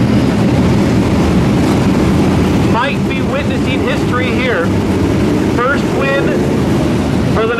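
Racing car engines roar loudly as the cars speed past.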